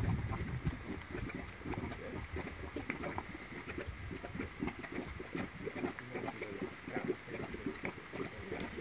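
Thick mud bubbles and plops steadily.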